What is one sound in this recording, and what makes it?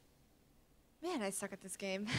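A young woman speaks with animation, close to a microphone.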